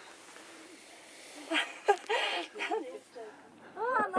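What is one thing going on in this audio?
A young woman laughs heartily.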